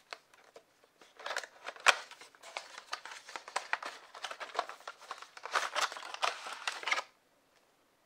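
Cardboard packaging rustles and scrapes as hands slide a box open.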